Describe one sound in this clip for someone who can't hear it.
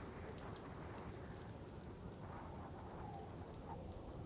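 A wood fire crackles softly.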